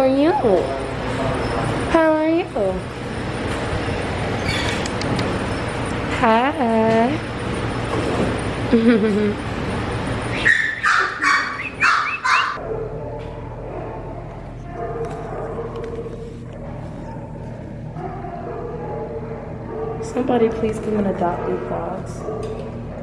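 A dog whines in high, wavering tones.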